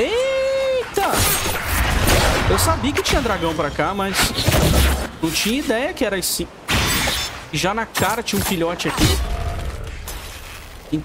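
Weapons clash and magic blasts burst in a fight.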